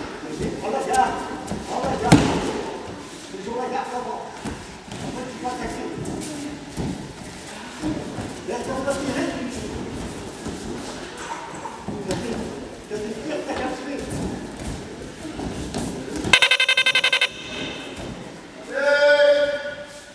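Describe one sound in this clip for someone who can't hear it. Bare feet shuffle and slap on a mat.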